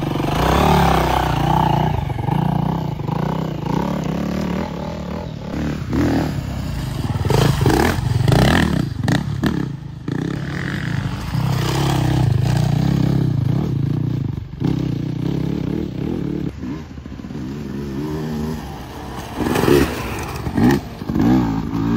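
Knobby tyres churn and spit loose dirt.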